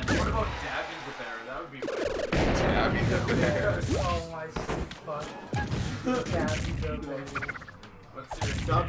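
Video game hits and effects clash rapidly.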